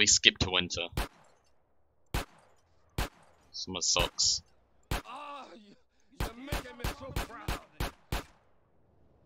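Pistol shots ring out one at a time.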